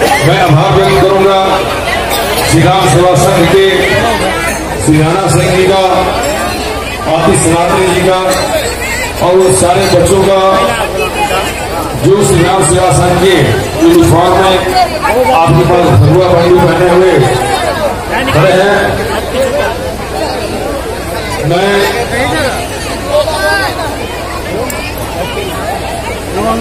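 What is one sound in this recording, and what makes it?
Loud music with a singing voice plays over loudspeakers.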